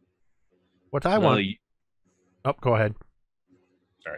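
A man speaks animatedly over an online call.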